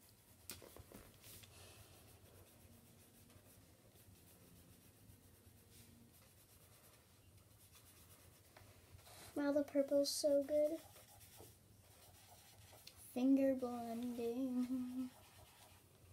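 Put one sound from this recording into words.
A marker scratches softly on paper.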